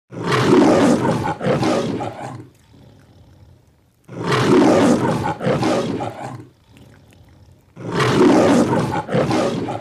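A cat lets out loud, harsh yowls again and again.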